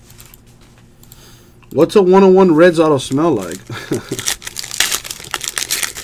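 A foil pack wrapper crinkles and tears.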